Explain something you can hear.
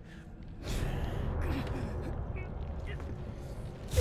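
A young man speaks tensely.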